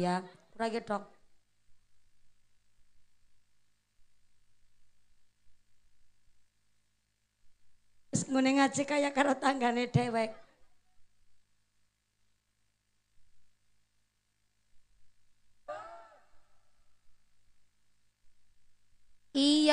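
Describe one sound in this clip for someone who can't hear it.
A woman speaks with animation into a microphone, heard through loudspeakers, with long pauses.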